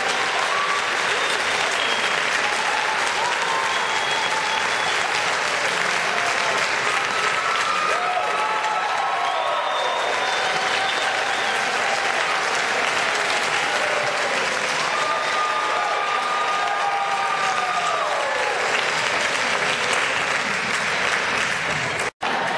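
People in a crowd cheer and whoop.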